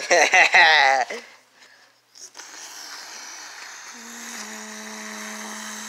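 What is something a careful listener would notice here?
Soft fabric rustles as a hand squeezes a plush toy.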